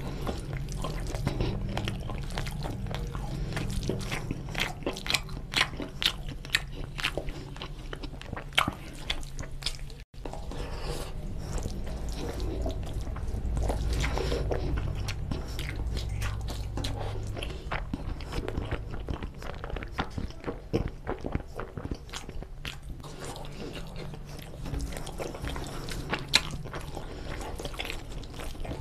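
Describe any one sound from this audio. Fingers squelch and mix soft food on a plate.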